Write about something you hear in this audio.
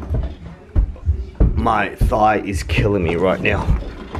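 A heavy bag bumps and thuds on steps.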